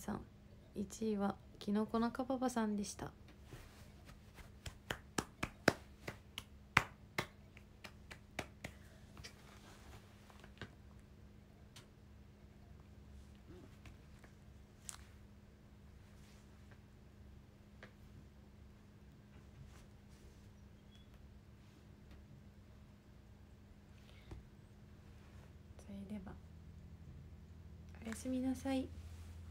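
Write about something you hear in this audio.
A young woman speaks softly, close to the microphone.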